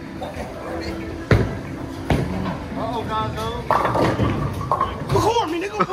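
A bowling ball rolls down a lane.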